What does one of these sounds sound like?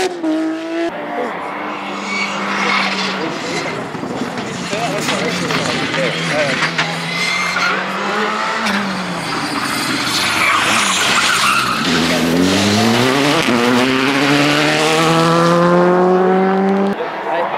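A second rally car engine revs and roars as the car approaches, shifting up through the gears.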